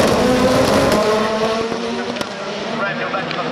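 Racing car engines whine in the distance and slowly fade.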